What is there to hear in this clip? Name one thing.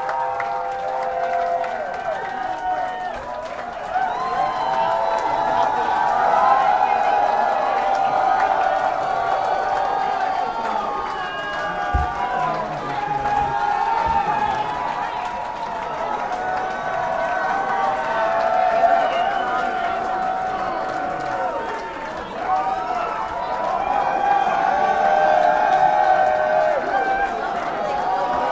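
An electric guitar plays loudly through amplifiers.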